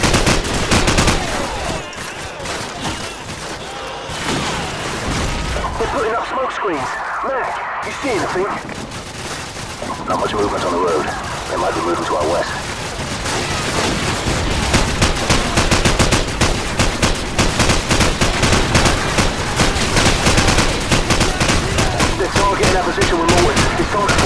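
A machine gun fires rapid bursts close by.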